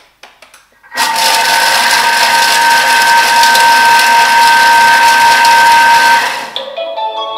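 A kitchen machine whirs loudly with a high steady hum.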